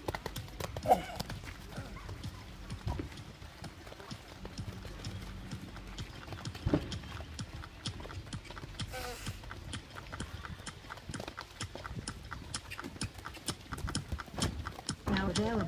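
Horse hooves thud on soft sand at a canter.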